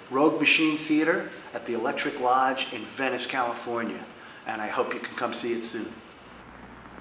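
A middle-aged man talks calmly and close to the microphone.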